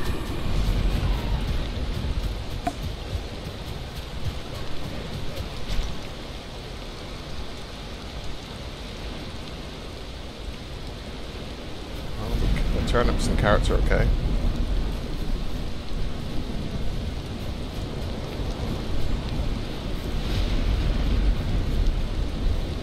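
Heavy rain falls steadily outdoors.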